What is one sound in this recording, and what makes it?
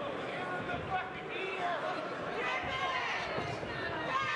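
A boxer's gloved punches land with dull thuds.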